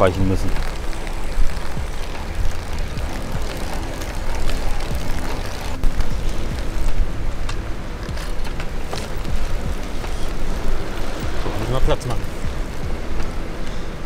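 Wind buffets and rumbles against the microphone while moving fast outdoors.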